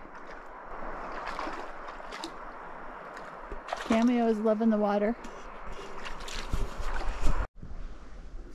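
Water laps and splashes gently.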